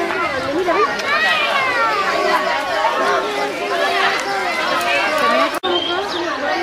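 A crowd of women and children chatter and call out nearby outdoors.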